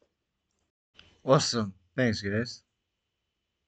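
A man speaks briefly and calmly into a nearby microphone.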